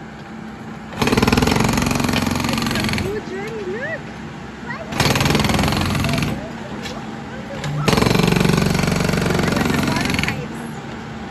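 A hydraulic hammer on a backhoe pounds concrete in loud rapid bursts.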